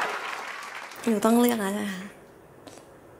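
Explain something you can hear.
A young woman laughs into a microphone.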